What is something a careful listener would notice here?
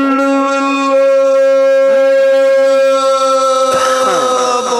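A man sings a long, held note loudly through a microphone.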